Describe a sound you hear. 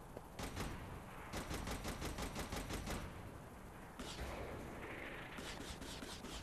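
Helicopter rotor blades thump steadily.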